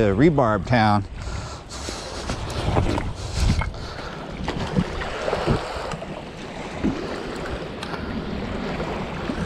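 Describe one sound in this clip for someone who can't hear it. Small waves lap against a rocky shore.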